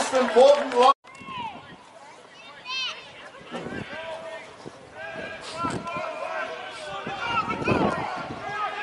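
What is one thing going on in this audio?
Young men shout calls to each other on an open field.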